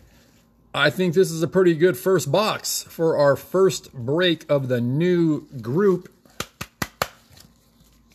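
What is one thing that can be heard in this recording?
A card slides into a stiff plastic holder with light scraping and clicks.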